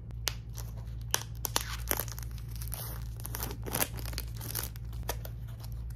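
A cardboard box is tapped and handled close up.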